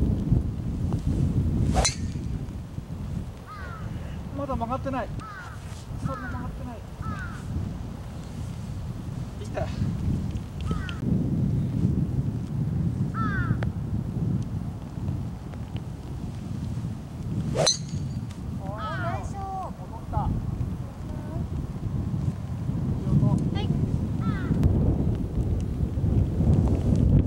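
Wind rumbles across an open outdoor space.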